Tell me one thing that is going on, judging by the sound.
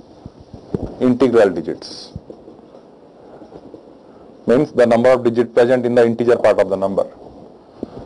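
A man speaks calmly into a nearby microphone, explaining in short bursts.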